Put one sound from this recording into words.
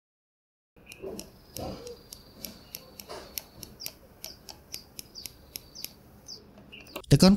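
A watch's hands click quickly as a button is pressed repeatedly.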